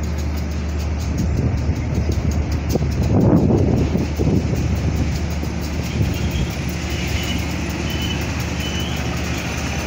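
A diesel locomotive engine rumbles as it rolls slowly closer.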